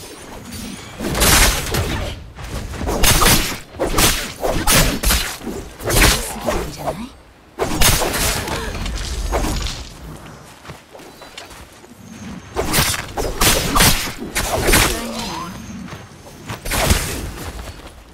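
Blades swish and clash in a fast fight.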